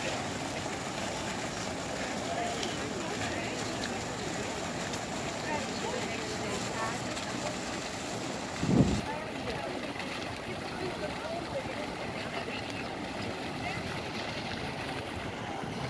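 A fountain jet splashes steadily onto wet stone.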